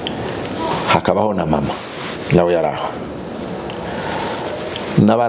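A middle-aged man speaks with animation into a clip-on microphone, close by.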